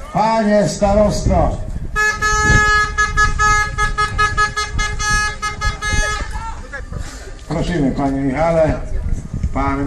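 A man announces through a loudspeaker outdoors.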